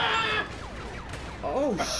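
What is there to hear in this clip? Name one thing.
Sparks crackle from bolts hitting metal.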